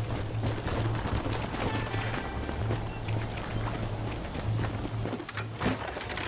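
Horse hooves clop on the ground.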